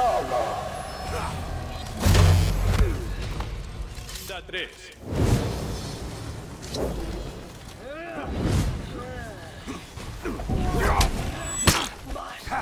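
Metal blades clash and strike.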